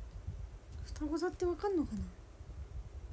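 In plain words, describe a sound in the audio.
A young woman says a few words close to the microphone, with her voice falling in pitch.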